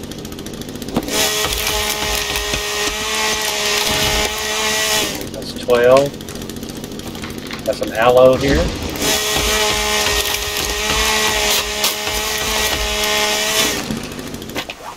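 A chainsaw buzzes loudly as it cuts into a tree trunk.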